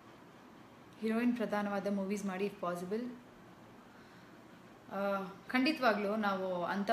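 A young woman speaks calmly, close to the microphone.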